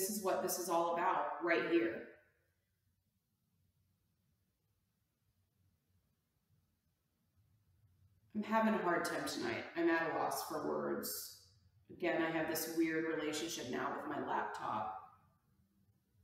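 A woman speaks calmly and clearly into a close microphone, pausing between phrases.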